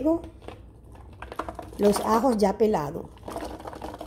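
Garlic cloves tumble into a plastic blender jar.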